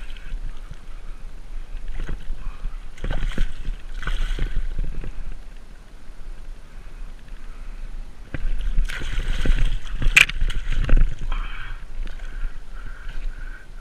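Water splashes as a large fish thrashes at the water's edge.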